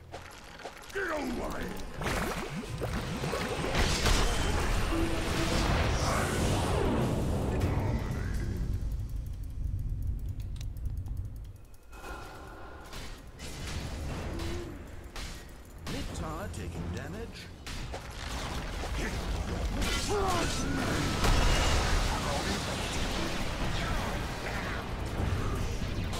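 Game battle effects crash, clang and whoosh.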